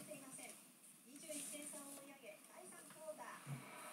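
A trading card slides across a soft mat.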